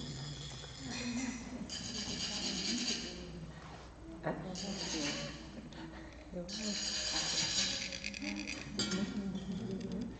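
Metal sand funnels rasp as they are scraped.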